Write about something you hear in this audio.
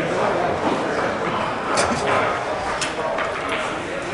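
Pool balls click together on a table.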